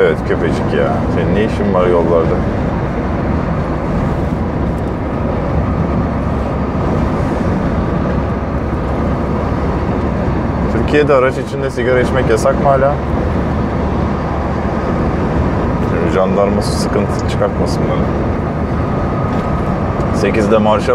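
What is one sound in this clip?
A man speaks calmly and close by, pausing between phrases.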